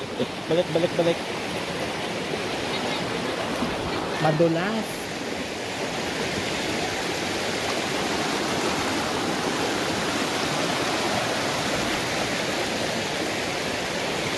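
A shallow stream babbles and rushes over rocks close by.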